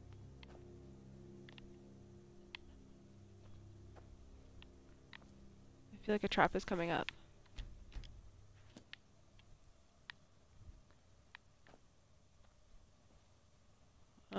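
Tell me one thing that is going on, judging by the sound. Footsteps tread slowly on stone.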